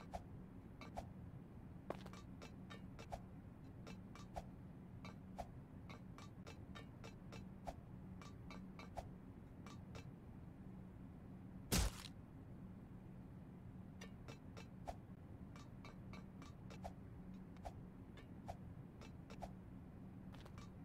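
Light footsteps tap on a hard floor.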